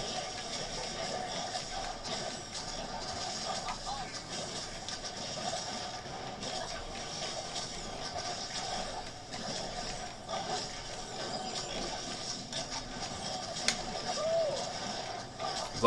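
Magic blasts and sparkling effects crackle and whoosh in a video game.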